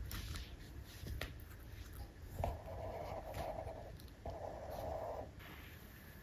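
A small puppy laps and chews food from a bowl.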